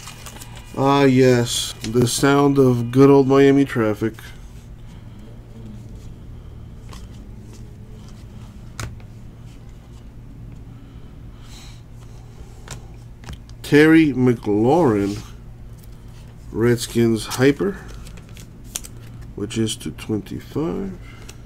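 Trading cards shuffle and slide softly between hands.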